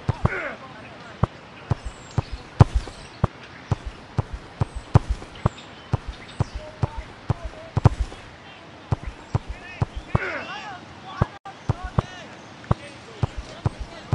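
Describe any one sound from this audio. A football is kicked again and again with short, sharp thuds.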